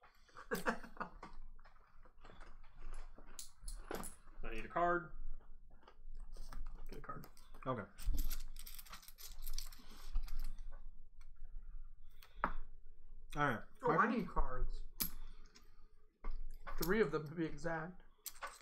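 Cards and game pieces clack on a table.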